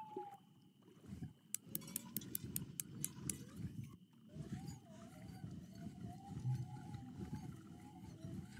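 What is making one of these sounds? A fishing reel whirs and clicks as line is wound in.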